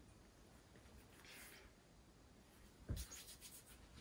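A plate clinks down onto a table.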